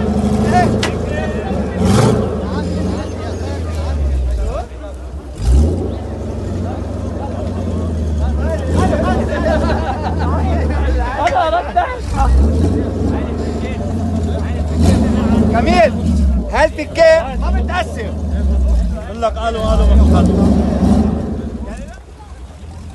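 Several men talk and call out loudly close by, outdoors.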